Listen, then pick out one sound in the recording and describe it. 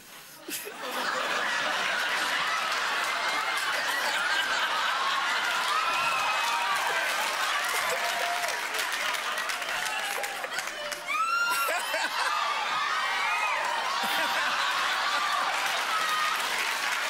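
A studio audience laughs and murmurs.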